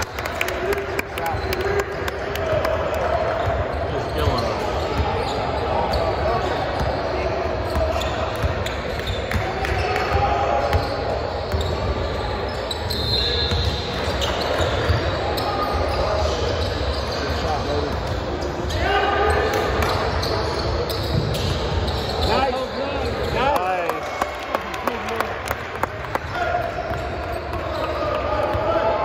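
Sneakers squeak on the wooden floor.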